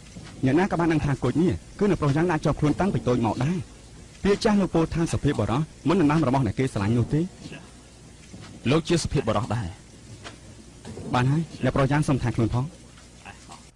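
A young man speaks close by in a calm, teasing voice.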